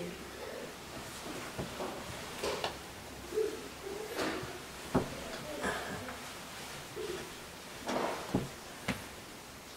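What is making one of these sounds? A blanket rustles as it is pulled over a person.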